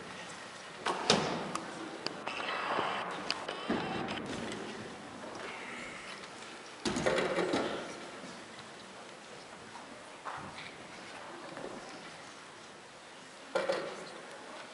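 Chairs and music stands knock and clatter on a stage.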